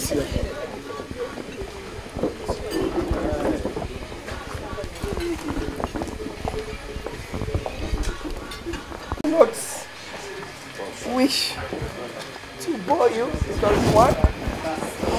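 A crowd of men and women chatter all around outdoors.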